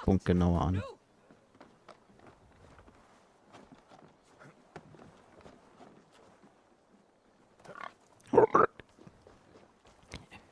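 Footsteps patter quickly on wood and ground.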